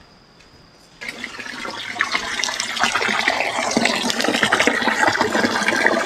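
Water pours steadily from a pipe and splashes into a metal pot.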